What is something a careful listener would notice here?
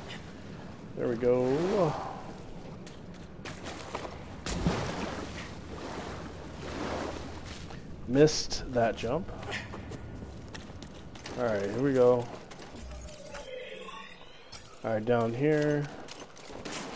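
A man speaks into a close microphone with animation, in short bursts.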